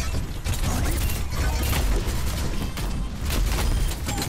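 Explosions burst with a deep boom.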